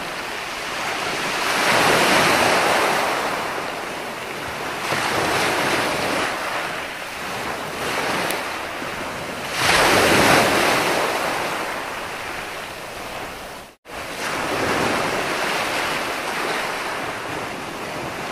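Waves crash and wash up onto a shore in surging rushes.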